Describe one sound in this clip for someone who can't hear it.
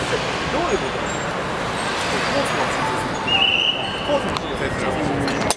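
A busy street crowd murmurs outdoors.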